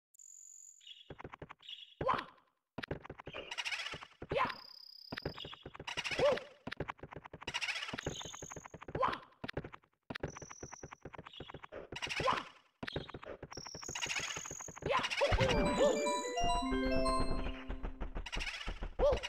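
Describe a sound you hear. Quick footsteps patter on stone.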